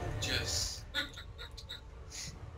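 Soft menu clicks sound several times.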